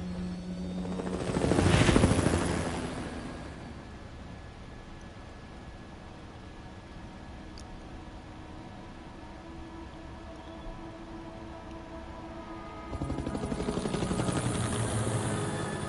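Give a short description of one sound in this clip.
A helicopter's rotor roars and thumps as it flies past.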